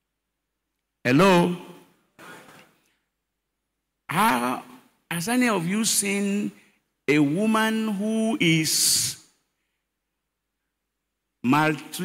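An elderly man preaches with energy into a microphone, heard through loudspeakers, in bursts with pauses.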